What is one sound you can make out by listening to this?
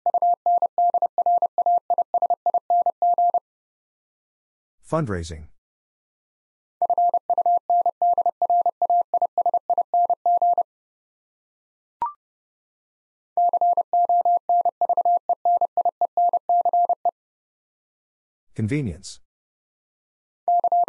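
Morse code beeps out in quick, steady bursts of a single tone.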